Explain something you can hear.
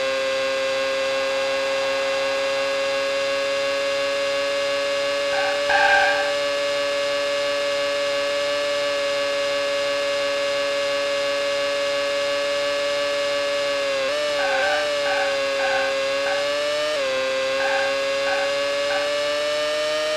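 A racing car engine drones at a high, steady pitch.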